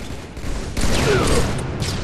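A grenade explodes in a video game.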